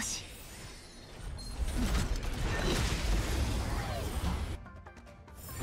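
Blasts and metallic strikes crash in a fight.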